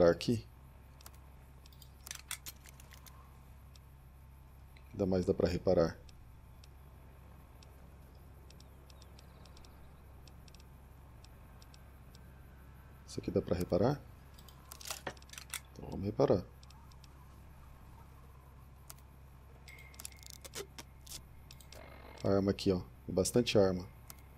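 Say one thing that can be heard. Soft electronic clicks tick as a menu is scrolled.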